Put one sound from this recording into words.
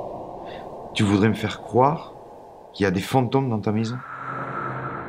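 A man speaks softly and close by.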